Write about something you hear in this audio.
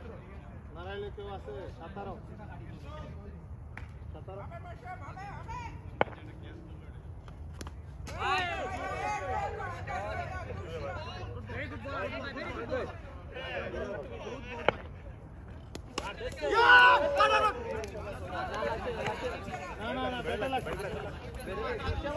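Young men call out and talk loudly outdoors.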